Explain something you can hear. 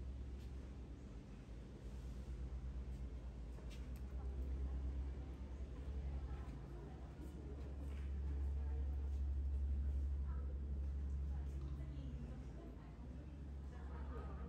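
Men and women chat quietly nearby.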